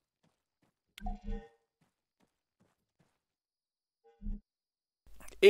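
Heavy footsteps thud on the ground.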